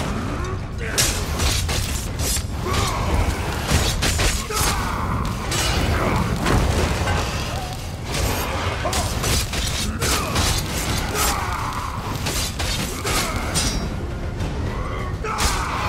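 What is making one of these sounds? Blades clash and strike in a fight.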